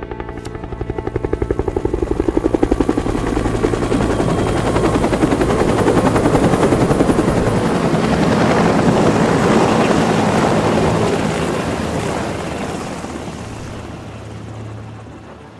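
A helicopter's rotor thumps loudly close by, then slowly fades away.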